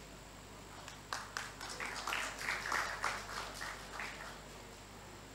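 A small crowd claps briefly.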